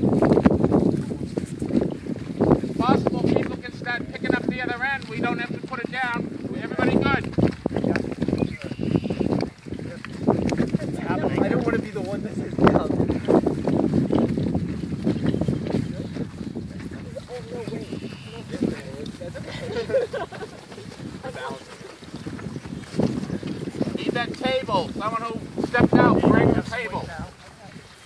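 A group of adult men and women talk and call out to each other outdoors.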